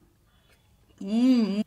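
A young woman hums a short high note close to a microphone.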